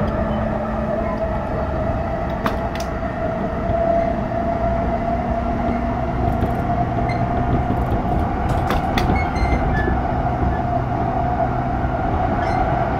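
An electric train hums steadily as it runs.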